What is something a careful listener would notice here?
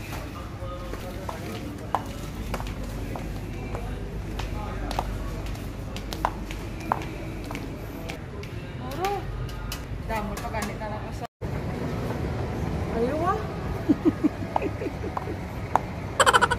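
Indistinct chatter of shoppers echoes in a large indoor space.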